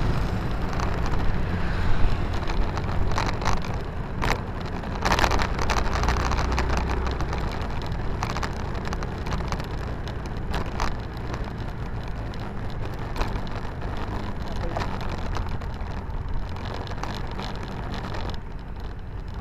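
Wind rushes past the microphone and eases as the motorcycle slows.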